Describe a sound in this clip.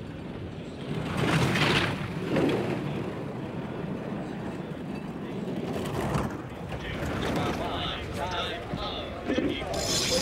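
A bobsleigh rumbles and rattles fast down an icy track.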